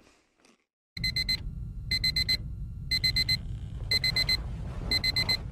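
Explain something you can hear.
A toy truck's motor rumbles steadily.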